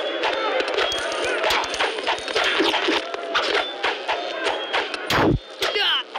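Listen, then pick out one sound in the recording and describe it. Cartoonish blows and clattering effects sound during a video game fight.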